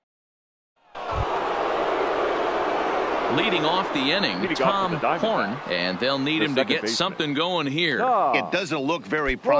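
A large crowd murmurs and cheers in a stadium.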